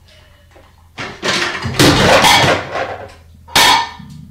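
A cat scrabbles at a shelf, knocking dishes that clatter.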